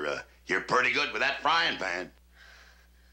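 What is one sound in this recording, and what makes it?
A man speaks with emotion close by.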